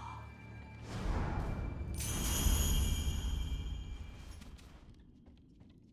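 A magical shimmer swells and fades.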